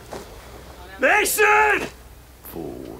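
A man groans and speaks weakly, close by.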